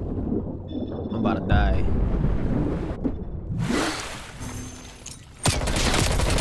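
Water splashes and bubbles as a swimmer moves underwater.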